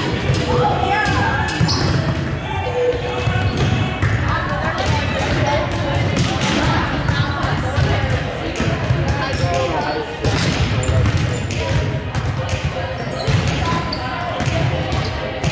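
Young women call out to each other in an echoing hall.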